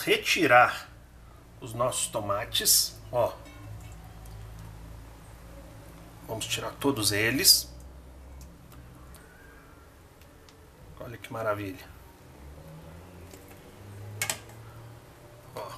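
Water bubbles at a low boil in a pot.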